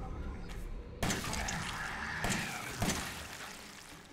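Gunshots bang loudly in a game.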